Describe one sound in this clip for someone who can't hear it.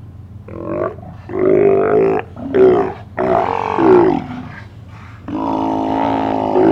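Sea lions bark and roar loudly, close by.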